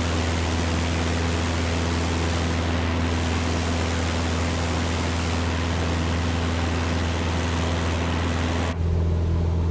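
A small propeller plane's engine drones steadily, heard from outside with a rushing of wind.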